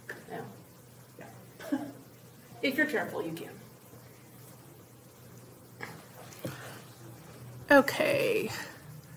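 A woman speaks calmly into a microphone in short phrases.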